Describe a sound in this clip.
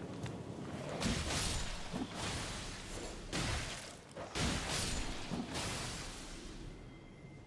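Blades slash and strike enemies in quick bursts.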